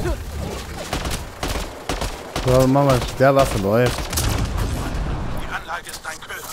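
An energy blast booms with a deep rumble.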